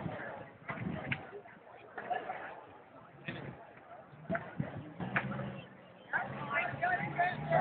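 A group of young people chatter nearby outdoors.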